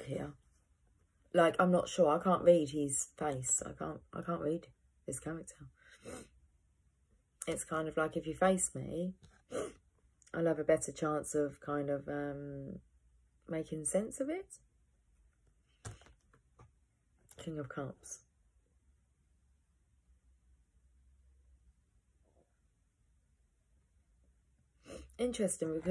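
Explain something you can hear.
A young woman speaks calmly and close to a microphone, pausing often.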